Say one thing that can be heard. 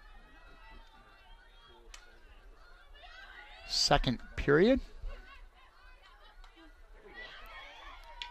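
A field hockey stick strikes a ball with a sharp crack.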